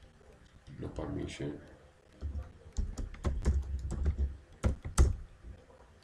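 Keys clatter as someone types on a keyboard.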